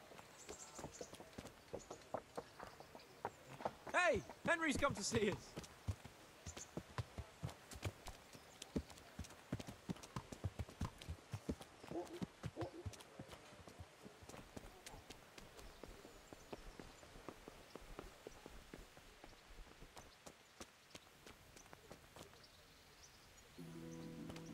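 Footsteps thud on hard ground at a steady pace.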